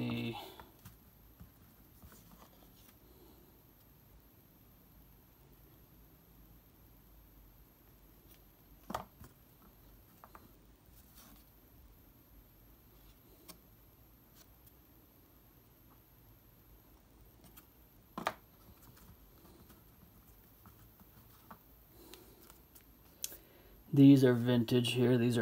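Trading cards tap and rustle as a hand flips through them.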